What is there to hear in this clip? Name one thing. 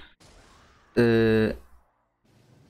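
A short electronic chime sounds as a level ends.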